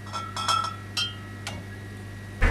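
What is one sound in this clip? Glass bottles clink on a shelf.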